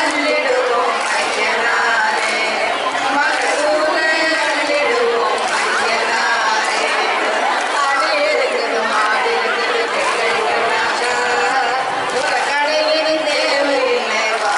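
A crowd of women chatter and cheer loudly nearby.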